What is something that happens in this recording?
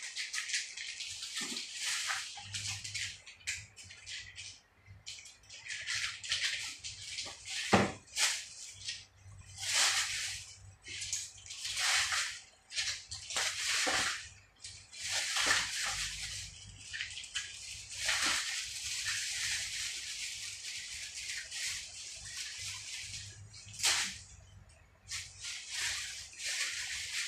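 Plastic parts rustle and click nearby, in bursts.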